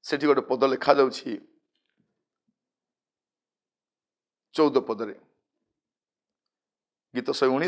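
A man reads aloud calmly into a close microphone, with pauses.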